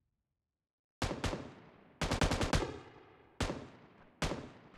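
A rifle fires in short bursts of loud shots.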